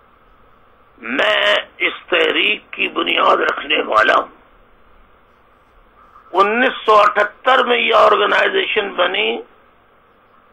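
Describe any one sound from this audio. A middle-aged man speaks calmly and close to a microphone, in bursts with pauses.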